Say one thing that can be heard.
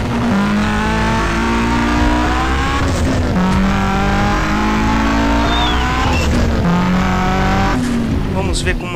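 A car engine revs loudly as a car drives off-road.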